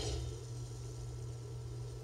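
A spaceship's thrusters roar briefly.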